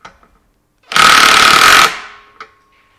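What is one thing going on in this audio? A cordless screwdriver whirs briefly.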